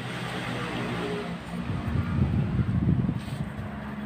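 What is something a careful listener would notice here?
A man chews and eats noisily close by.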